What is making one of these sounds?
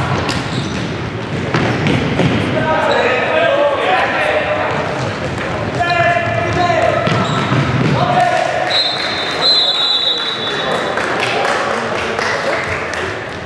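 A futsal ball thuds as it is kicked in a large echoing hall.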